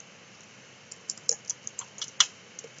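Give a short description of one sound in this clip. Keys on a keyboard click rapidly.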